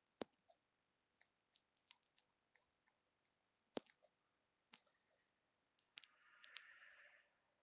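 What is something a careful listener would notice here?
Light footsteps tap on a hard floor.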